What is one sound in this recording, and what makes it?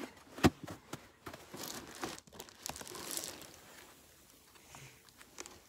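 Gloved hands knock and scrape against a wooden box.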